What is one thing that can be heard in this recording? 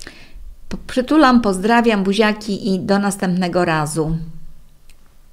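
An elderly woman speaks warmly and close to a microphone.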